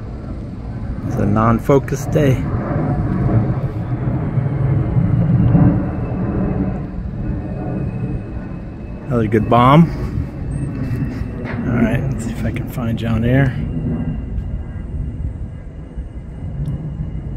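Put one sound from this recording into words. A propeller aircraft drones in the distance.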